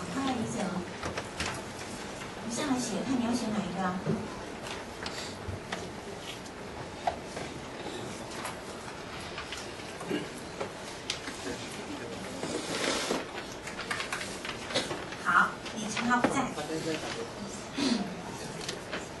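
A woman speaks through a microphone in a room, pausing now and then.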